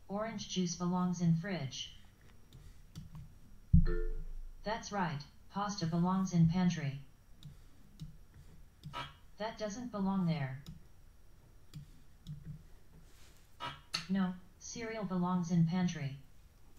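A woman speaks calmly into a close microphone, in short phrases with pauses.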